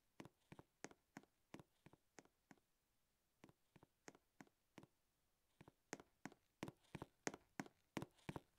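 Footsteps patter quickly and evenly.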